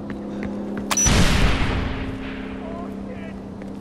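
An explosion booms in the distance and rumbles away.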